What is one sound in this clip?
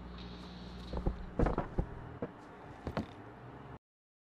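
A door opens with a creak.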